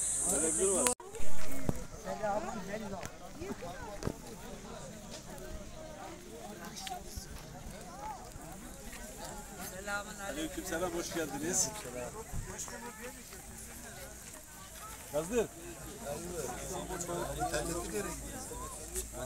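Men talk calmly nearby outdoors.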